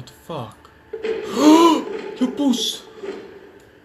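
A young man cries out in alarm.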